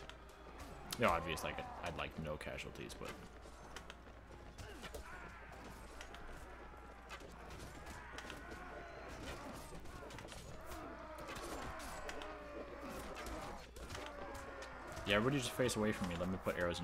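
Men shout and cry out in battle.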